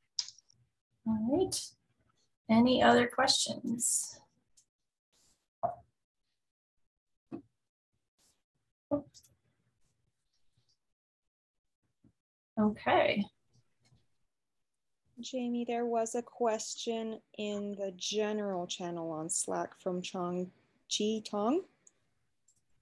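A middle-aged woman speaks calmly over an online call, with pauses.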